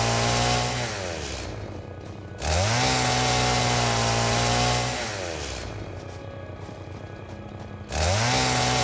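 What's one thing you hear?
A chainsaw engine revs loudly, then winds down to idle, over and over.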